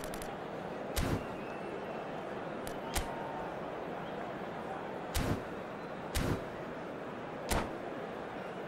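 Short electronic clicks sound as menu options are selected.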